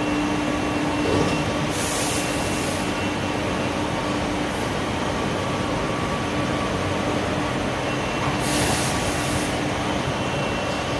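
A large machine hums and rumbles steadily.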